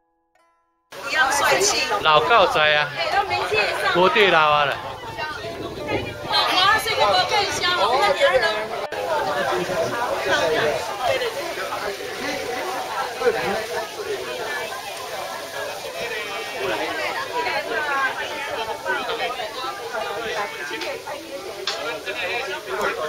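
A crowd of adults chatter outdoors.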